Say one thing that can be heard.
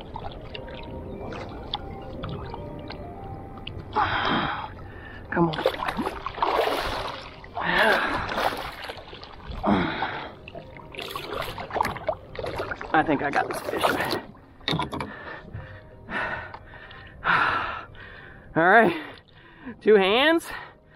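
Water splashes and sloshes as a large fish thrashes at the surface.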